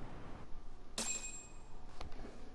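A bright electronic chime rings once.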